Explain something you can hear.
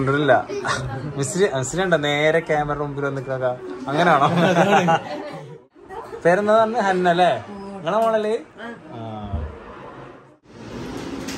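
A young man talks cheerfully close by.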